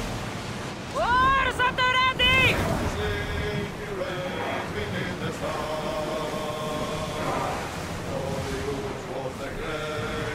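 A group of men sing together on a ship's deck.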